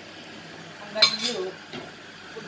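A metal pot clanks onto a stove.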